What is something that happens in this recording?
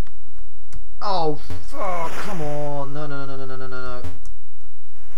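Electronic tones from a video game slide downward in pitch.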